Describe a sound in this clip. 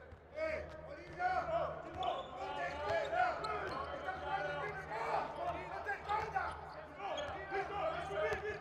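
A basketball bounces on a wooden floor as a player dribbles.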